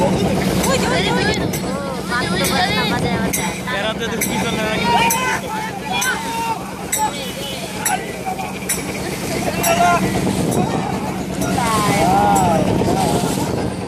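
Paddles splash rhythmically in the water.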